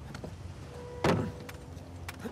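A car door slams shut with a loud thud.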